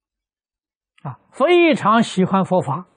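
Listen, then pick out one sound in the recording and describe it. An elderly man speaks calmly and warmly, close to a microphone.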